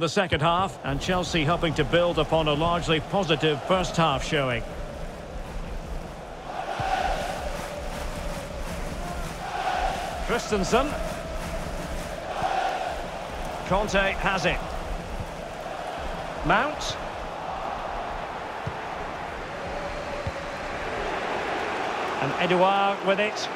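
A large stadium crowd murmurs and cheers in swells.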